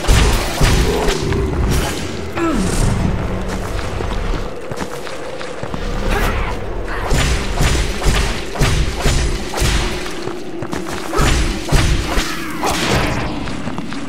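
Swords clash and slash in rapid hits.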